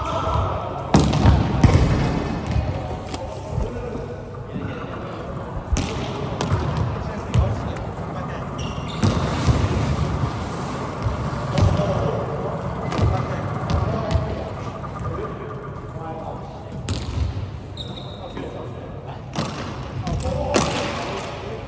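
Volleyballs are struck with a hand, echoing in a large gym.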